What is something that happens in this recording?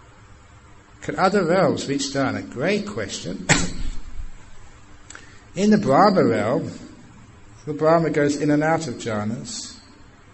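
A man speaks calmly and clearly through a microphone, with long pauses.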